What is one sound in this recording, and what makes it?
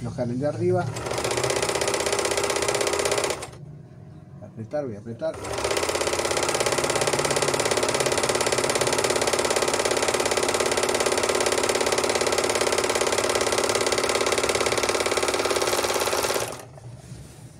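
A sewing machine runs fast, whirring and stitching in steady bursts.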